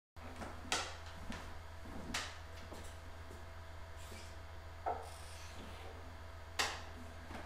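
An acoustic guitar bumps and knocks with hollow thuds.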